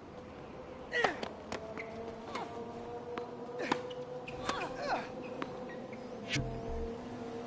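A tennis racket hits a ball with sharp pops.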